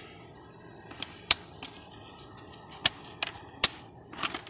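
A hard plastic case clicks and knocks as it is handled.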